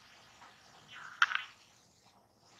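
A man slurps a drink from a can.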